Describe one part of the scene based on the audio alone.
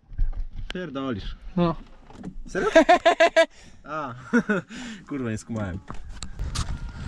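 A young man talks excitedly and laughs close to the microphone.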